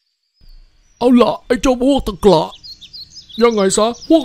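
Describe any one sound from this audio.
A man speaks with animation in a deep cartoonish voice.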